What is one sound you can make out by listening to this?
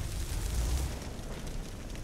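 A fire spell crackles and roars.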